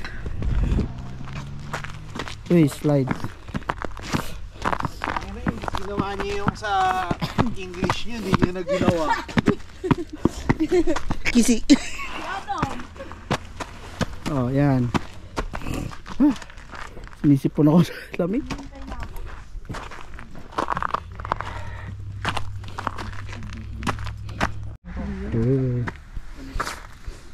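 Footsteps crunch on icy snow.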